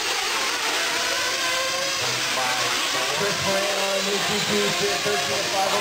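Small remote-control car motors whine loudly in a large echoing hall.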